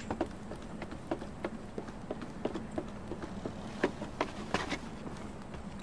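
Wooden ladder rungs knock as someone climbs.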